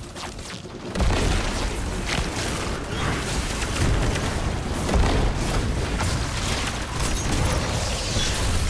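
Explosions burst loudly in a video game.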